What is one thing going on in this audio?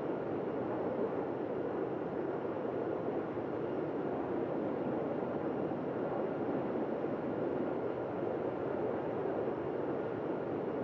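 Jet engines roar steadily from a plane's cockpit.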